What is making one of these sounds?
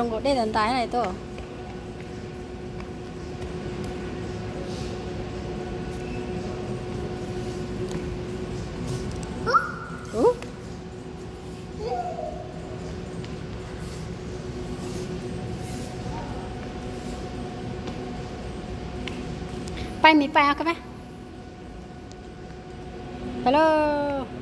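A toddler squeals and babbles nearby in short bursts.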